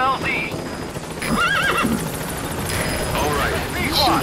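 A horse's hooves clop on gravel.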